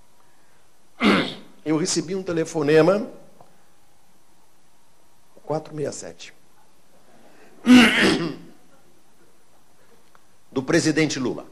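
An older man speaks calmly through a microphone, pausing between phrases.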